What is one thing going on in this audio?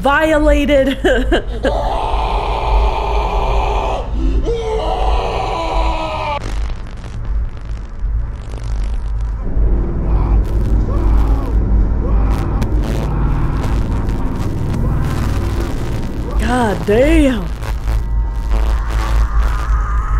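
Static hisses and crackles from a distorted tape.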